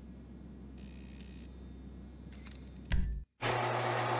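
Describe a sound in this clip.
Fingers tap on a computer keyboard.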